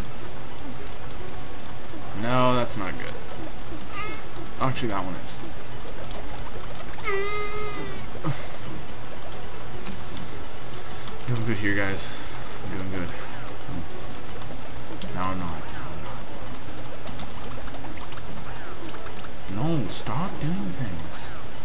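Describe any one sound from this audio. Video game music plays steadily.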